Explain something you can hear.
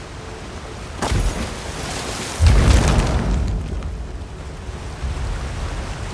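A fire spell bursts with a loud roaring whoosh.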